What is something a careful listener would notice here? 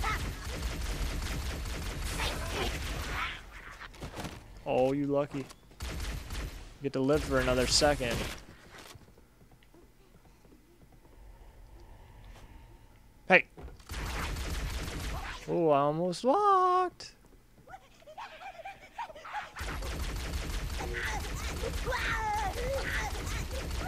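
An energy gun fires in rapid bursts.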